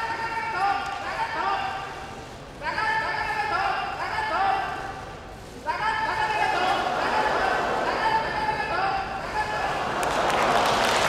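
A man shouts rhythmic calls loudly during a struggle.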